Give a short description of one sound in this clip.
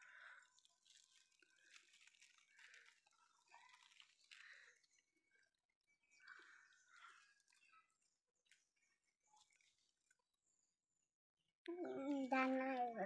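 Wet fish pieces drop softly into a plastic basket.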